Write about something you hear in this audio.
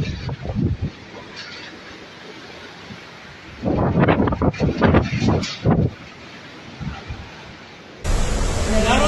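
Floodwater rushes and churns.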